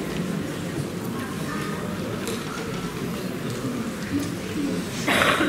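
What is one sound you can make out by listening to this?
Bagpipes play a droning tune in a large hall.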